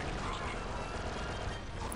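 Blaster shots fire with sharp electronic zaps.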